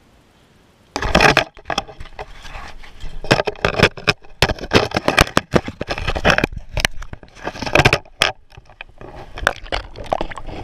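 Water splashes and sloshes as a fish thrashes in a hole in the ice.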